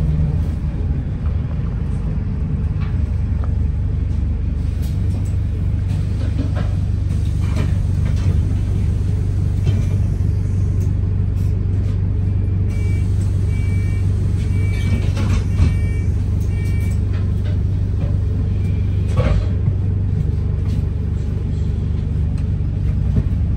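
Loose fittings rattle and knock as the bus moves.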